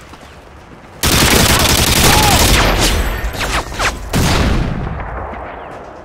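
A light machine gun fires in bursts.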